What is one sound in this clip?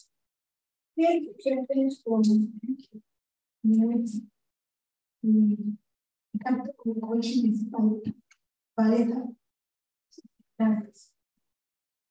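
A young woman speaks with animation into a microphone, heard through an online call.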